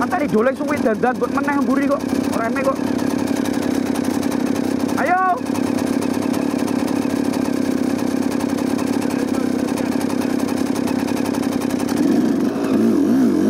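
A motorcycle engine idles steadily close by.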